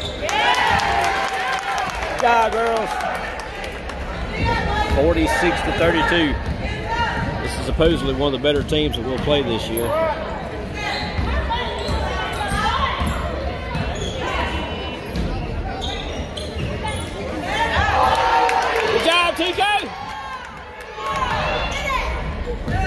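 Spectators shout and cheer in an echoing gym.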